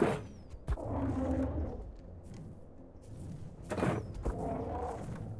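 A crossbow fires with a sharp snap.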